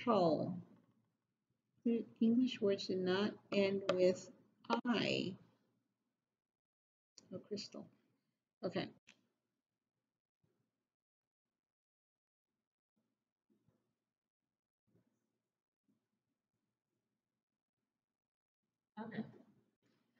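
A middle-aged woman speaks calmly and clearly close by.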